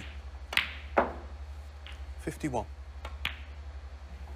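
Snooker balls knock together with sharp clicks.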